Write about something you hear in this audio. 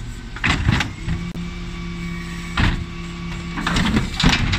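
A hydraulic lift whines as it tips bins up.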